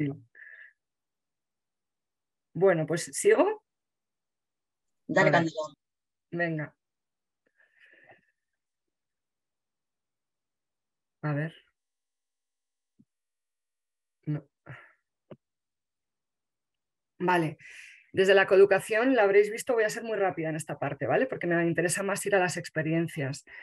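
A woman talks calmly through an online call, in short bursts with pauses.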